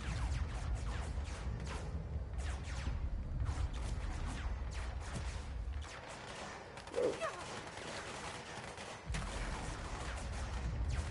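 Heavy blocks of concrete crash and tumble with deep rumbling booms.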